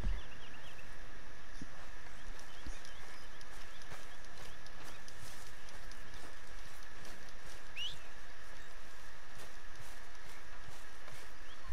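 Footsteps tread softly on grass outdoors.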